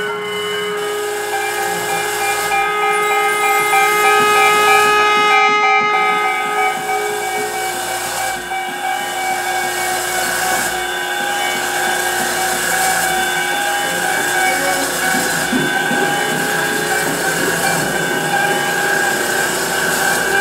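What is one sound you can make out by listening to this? A pedal steel guitar plays long, sustained, gliding notes.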